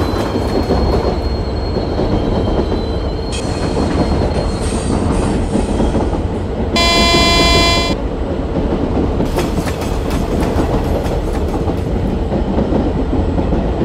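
An electric passenger train rumbles along rails.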